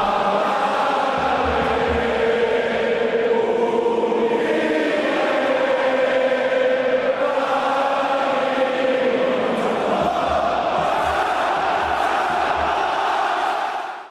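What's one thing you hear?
A large crowd sings together loudly outdoors.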